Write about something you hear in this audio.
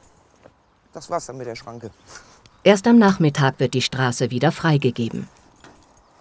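A woman speaks calmly to someone nearby outdoors.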